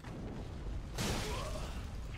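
A sword slashes and strikes with a heavy thud.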